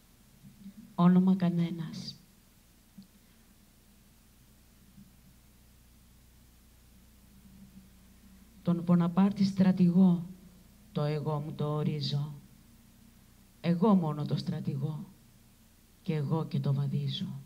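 A woman speaks into a microphone in short bursts with pauses.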